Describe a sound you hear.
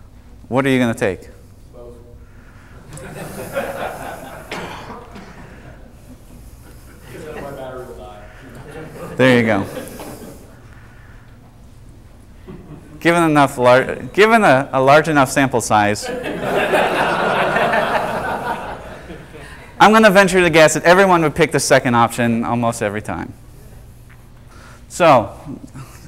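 A man speaks with animation to a room, his voice carrying in the hall.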